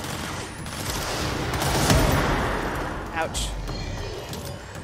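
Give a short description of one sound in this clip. Explosions boom and debris scatters.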